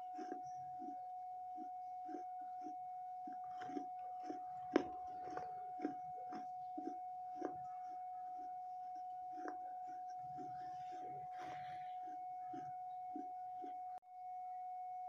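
A young woman makes soft mouth sounds close to a microphone.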